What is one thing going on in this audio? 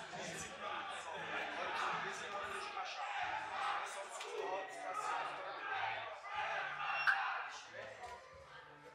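A man speaks firmly and closely, giving instructions.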